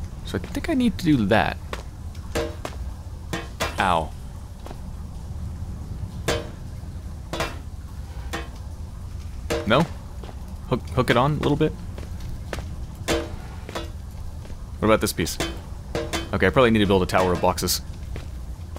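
Feet clank on metal ladder rungs during a climb.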